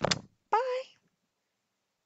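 A young woman speaks briefly and cheerfully through a headset microphone.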